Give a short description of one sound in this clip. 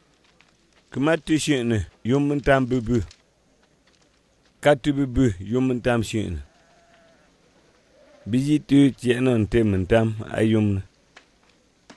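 A man speaks calmly in a clear, close voice.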